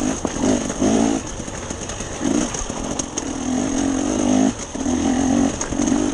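A dirt bike engine revs up and down in bursts close by.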